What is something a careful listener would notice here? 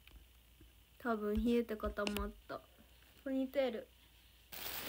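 A young woman speaks softly, close to a phone microphone.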